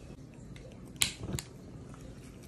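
A lighter clicks.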